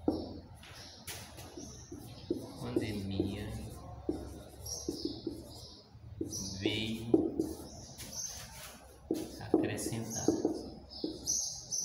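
A marker squeaks and scratches across a whiteboard.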